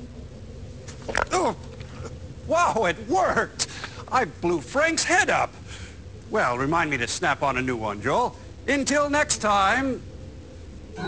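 A man in a high, theatrical voice talks and exclaims.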